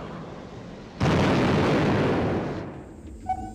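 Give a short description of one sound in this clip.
An explosion bursts loudly in the air.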